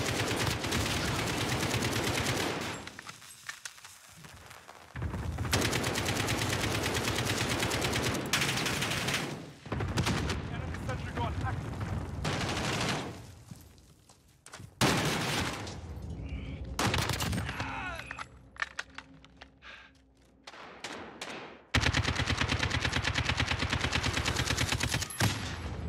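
Rapid gunfire bursts loudly again and again.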